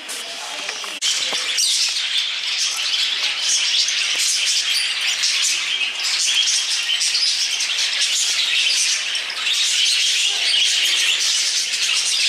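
Many budgies chirp and chatter busily nearby.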